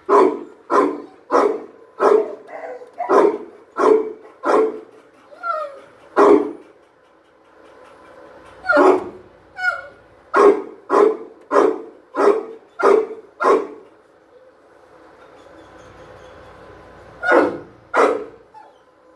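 A dog barks repeatedly, loud and close.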